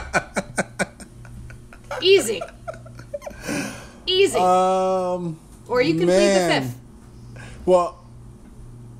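A young woman squeals with laughter over a microphone.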